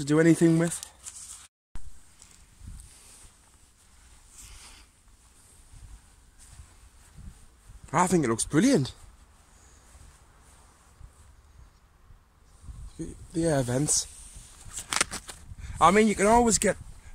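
Tent fabric rustles as a hand handles it.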